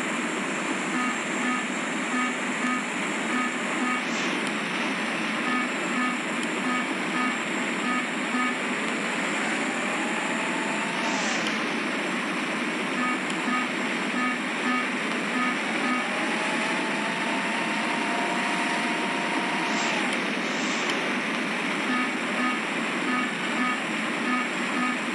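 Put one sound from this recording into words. A warning alarm beeps in quick repeated pulses.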